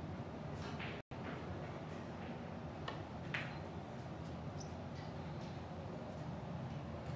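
Billiard balls knock together.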